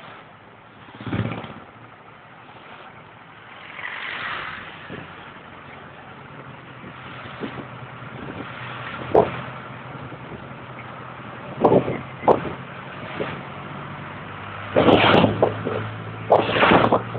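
A vehicle jolts and rattles over bumps in the road.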